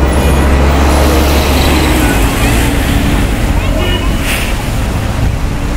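A van drives past close by.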